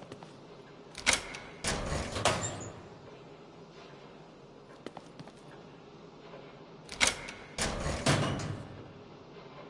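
A heavy metal locker door creaks open with a clank.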